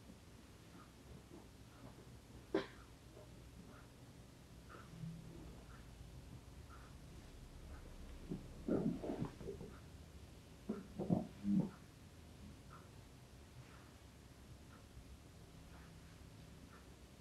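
Hands rub and press on a person's back.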